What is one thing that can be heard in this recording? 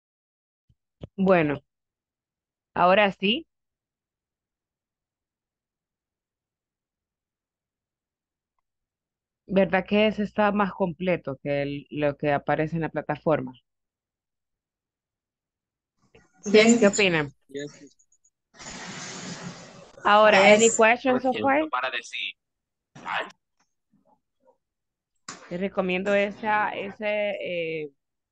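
A woman speaks with animation over an online call.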